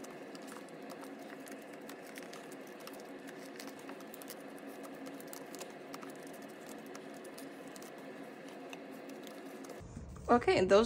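Plastic sleeves crinkle and rustle softly as cards are slipped in and out.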